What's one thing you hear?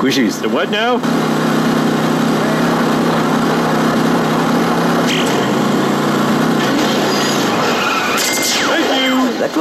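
A video game car engine drones.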